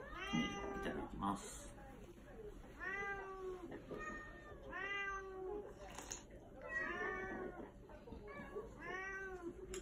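A cat meows repeatedly close by.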